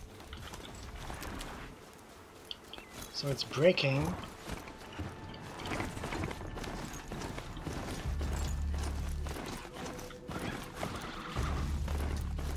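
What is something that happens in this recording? A mechanical mount's hooves thud and clank steadily on the ground.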